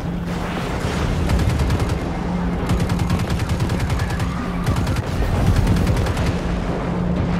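Gunfire from a rapid-firing weapon rattles in quick bursts.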